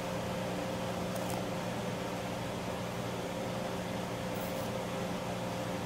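Coffee trickles into a cup.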